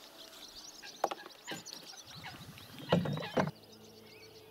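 A caught fish flaps and splashes beside a boat.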